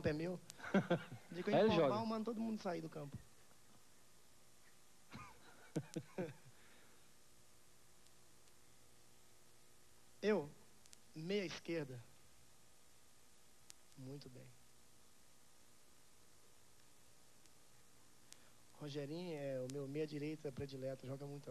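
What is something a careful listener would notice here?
A man sings softly into a microphone, heard through a loudspeaker, with pauses between phrases.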